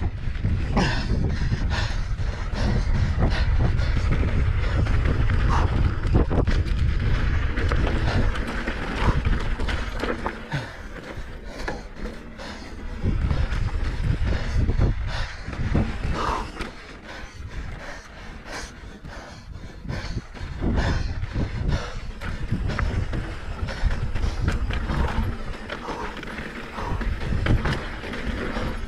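A mountain bike's frame and chain clatter over bumps.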